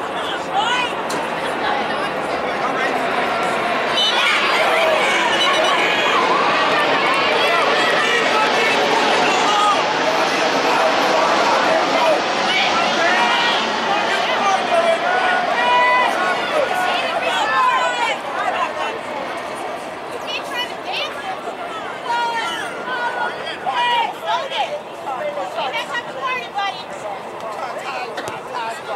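A crowd of spectators cheers and shouts outdoors, loudest in the middle and then dying down.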